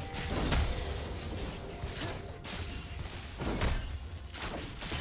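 Game spell effects whoosh and blast during a fight.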